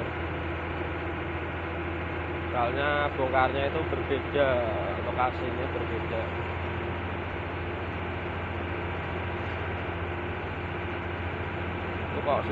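A vehicle's engine hums steadily while driving along a road.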